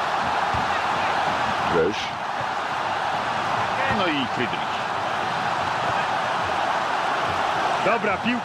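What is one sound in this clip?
A large stadium crowd murmurs and roars steadily.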